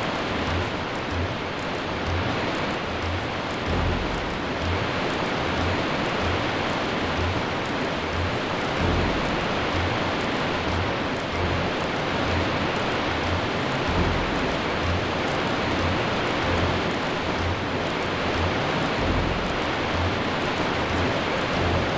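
A waterfall rushes steadily nearby.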